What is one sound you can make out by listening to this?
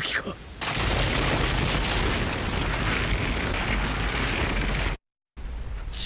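Rocks crash and rumble loudly.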